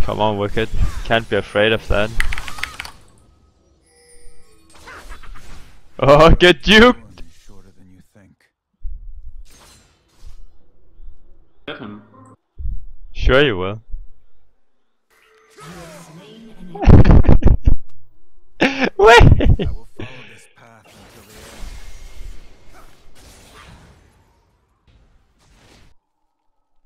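Magic spells whoosh and crackle during a fight.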